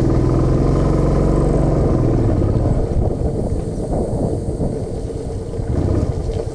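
Tyres crunch and rumble over a rough dirt road.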